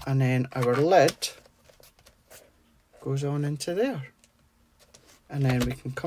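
Foil wrapping paper crinkles and rustles as hands fold it.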